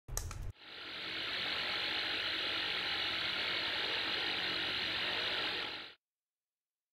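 Television static hisses loudly and steadily, then cuts off.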